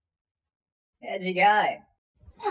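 A young man makes a short wailing sound, close up.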